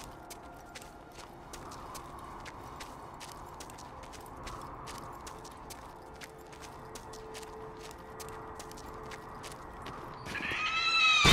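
Footsteps crunch over snow and ice at a steady pace.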